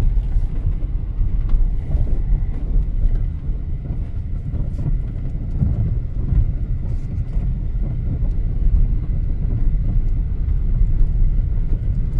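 Wind buffets the microphone outdoors with a steady low rumble.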